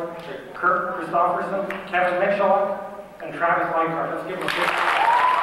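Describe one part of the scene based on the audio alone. A man reads out names through a microphone in a large hall.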